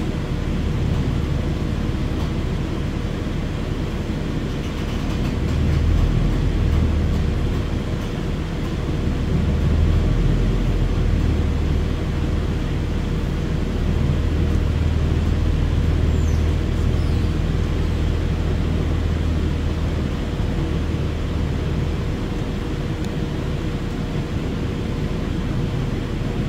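A diesel-electric hybrid articulated bus drives along, its engine droning low, heard from inside.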